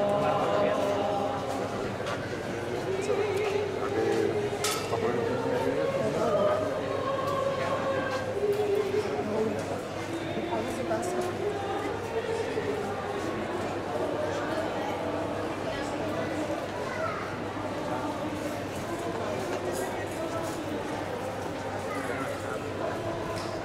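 A large crowd of men and women murmurs and chatters all around.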